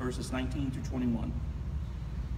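A middle-aged man speaks briefly into a microphone.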